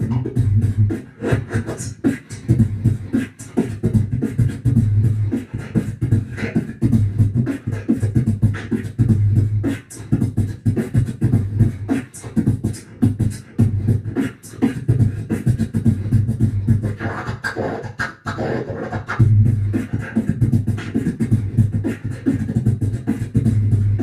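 A young man beatboxes into a microphone, with deep booming kicks and sharp snare clicks in a quick steady rhythm.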